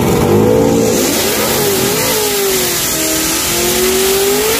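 Tyres screech and spin on the track.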